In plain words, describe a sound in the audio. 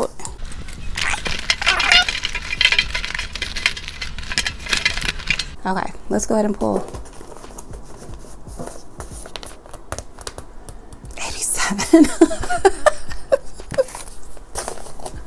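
Paper envelopes rustle and slide as hands flip through them.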